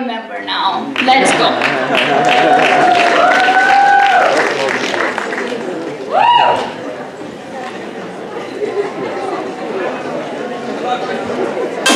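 An audience claps loudly in a large hall, and the applause slowly fades.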